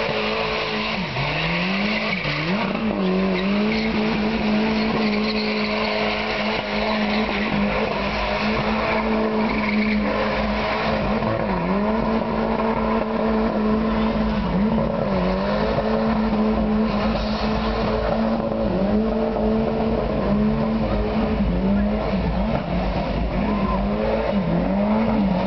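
Tyres squeal and hiss as they spin on the ground.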